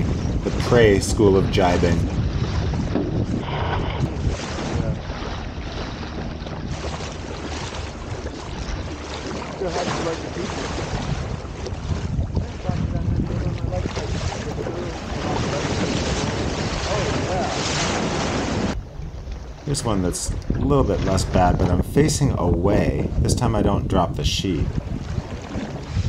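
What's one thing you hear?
Men talk loudly over the wind nearby.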